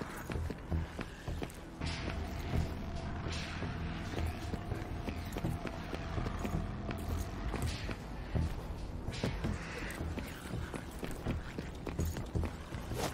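Footsteps crunch on rock as a man walks and climbs.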